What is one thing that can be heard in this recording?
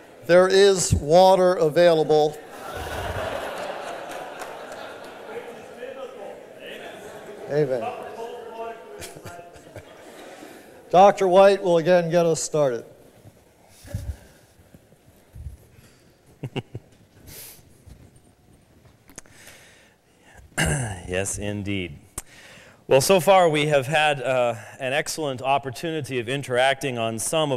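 A man speaks calmly into a microphone, heard in a large room.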